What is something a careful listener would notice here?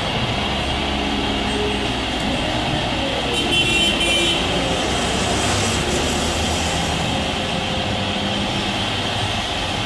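A jet airliner roars loudly as it climbs away overhead.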